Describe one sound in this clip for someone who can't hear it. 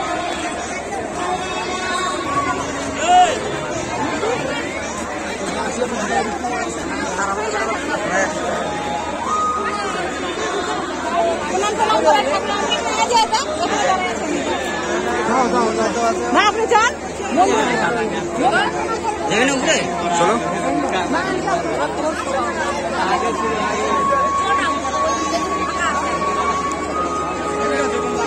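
A large outdoor crowd chatters and calls out loudly all around.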